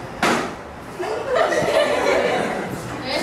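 A group of teenagers laughs and cheers.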